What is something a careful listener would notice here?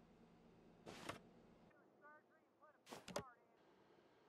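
A door opens and shuts.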